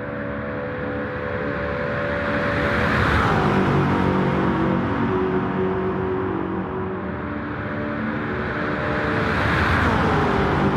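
A sports car engine roars loudly as the car speeds past, its pitch dropping as it goes by.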